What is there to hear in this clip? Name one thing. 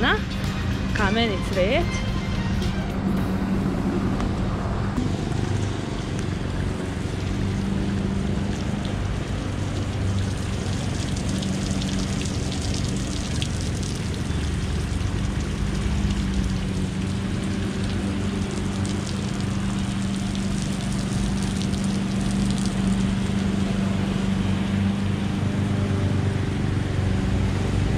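Water trickles and splashes steadily in a fountain.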